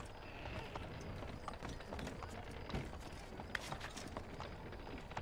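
Footsteps clatter on roof tiles.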